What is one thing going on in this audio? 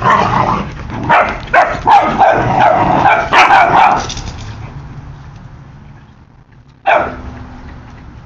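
Puppies yelp and growl close by as they play.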